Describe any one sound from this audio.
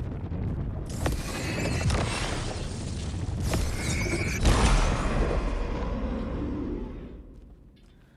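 A loud rushing roar swells and crackles, then fades away.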